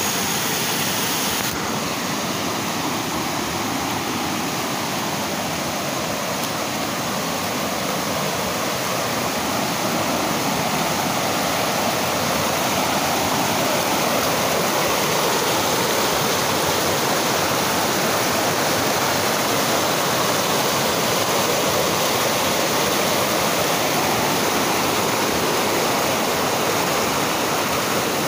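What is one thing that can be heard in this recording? A swollen river rushes loudly over rocks, heard up close outdoors.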